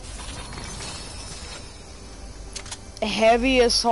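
A treasure chest creaks open with a chiming sparkle.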